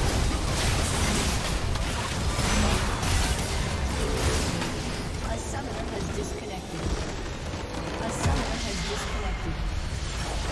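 Game spell effects crackle and explode during a battle.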